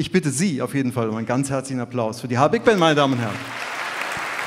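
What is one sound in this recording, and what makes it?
A big band plays a loud final chord in a large hall.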